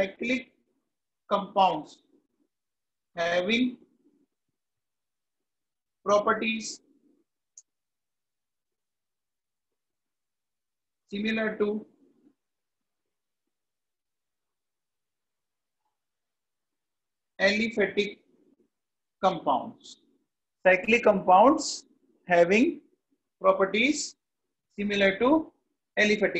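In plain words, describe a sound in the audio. A man speaks calmly into a close microphone, in short phrases with long pauses.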